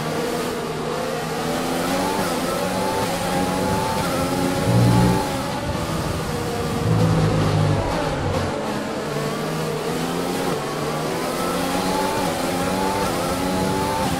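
A racing car engine screams at high revs, rising through the gears and dropping as it brakes.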